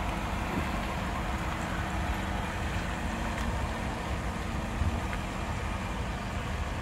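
A car engine hums as the car drives off slowly.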